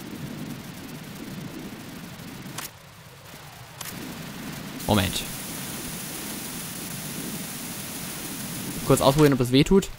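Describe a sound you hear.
A spray can hisses in bursts.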